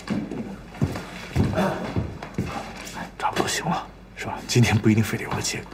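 A young man speaks calmly and closely.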